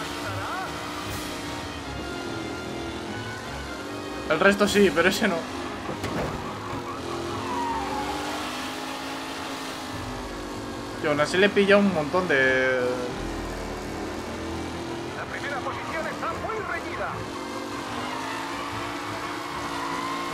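A racing car engine drones steadily, rising and falling in pitch.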